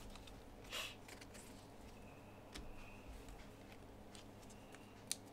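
Trading cards rustle and click as fingers flick through them.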